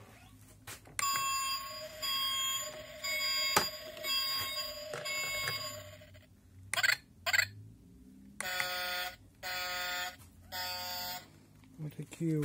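A plastic toy plays short electronic tunes and sound effects.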